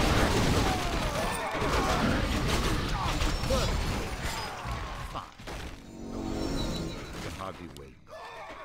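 Game units clash in battle with metallic hits and magic effects.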